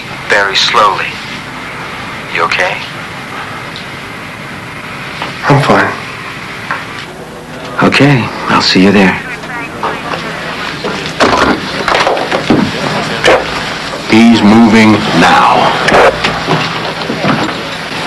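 A man speaks tensely into a phone.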